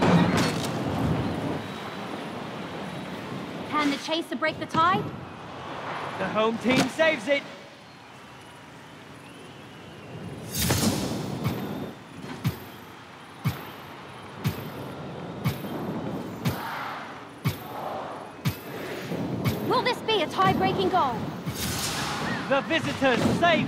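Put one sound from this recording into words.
A broom whooshes through the air.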